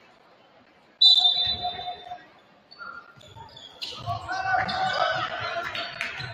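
Basketball sneakers squeak sharply on a hardwood court in a large echoing gym.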